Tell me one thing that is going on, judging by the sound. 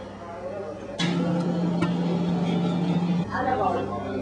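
A coffee grinder whirs steadily.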